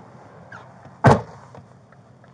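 A loud thump sounds close by.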